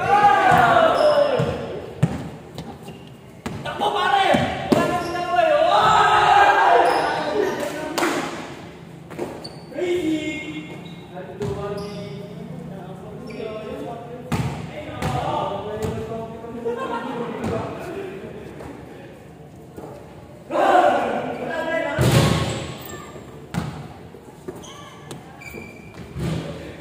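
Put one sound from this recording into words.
A basketball bounces on a hard floor in a large echoing hall.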